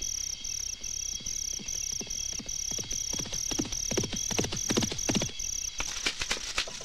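Hooves gallop on a dirt track.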